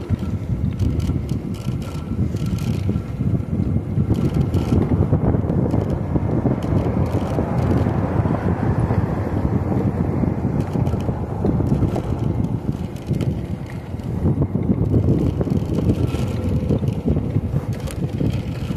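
Wind rumbles and buffets loudly against the microphone outdoors.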